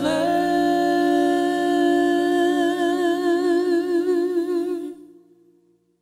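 A man sings with vibrato into a close microphone.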